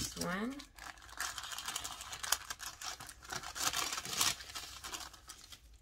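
Plastic packaging crinkles and rustles.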